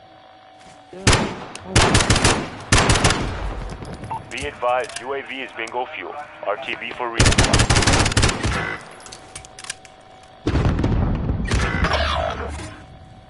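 Rifle shots ring out in rapid bursts.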